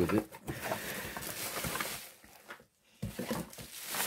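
A cardboard box flaps open.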